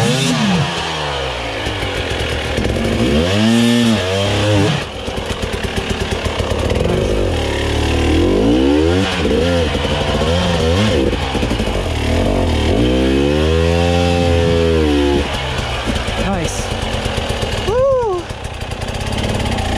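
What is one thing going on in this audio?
A dirt bike engine revs up and down, loud and close.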